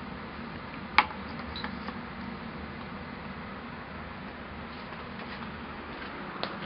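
A plastic keypad device knocks and clicks as it is handled.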